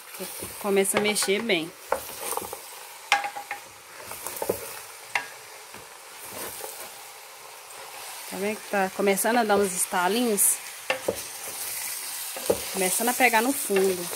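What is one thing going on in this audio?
A wooden spoon scrapes and stirs chunks of food in a metal pot.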